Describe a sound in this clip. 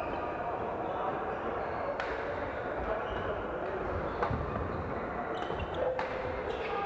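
Shoes squeak and thud on a wooden floor.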